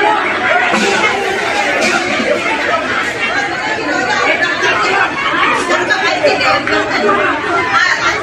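A large crowd shouts and clamours outdoors.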